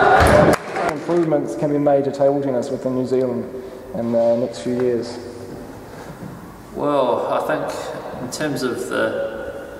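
A young man speaks calmly and close to a microphone.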